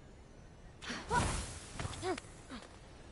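A burst of flame roars briefly.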